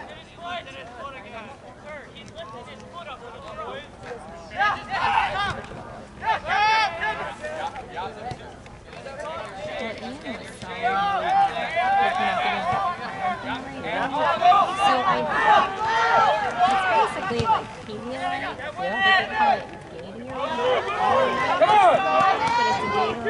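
Young players shout to one another across an open field outdoors.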